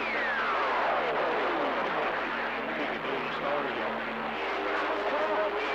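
A radio receiver hisses with static and warbling tones.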